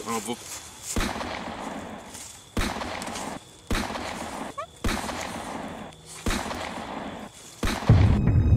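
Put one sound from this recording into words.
A rifle fires repeated loud shots outdoors.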